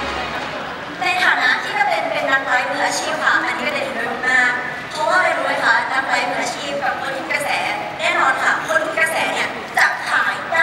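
A young woman speaks with animation into a microphone, heard through loudspeakers in a large hall.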